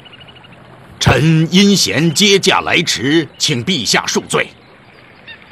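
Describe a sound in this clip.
A man speaks pleadingly through a microphone.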